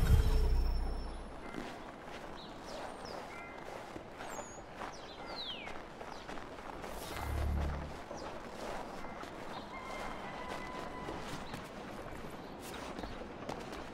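Footsteps crunch quickly on packed snow.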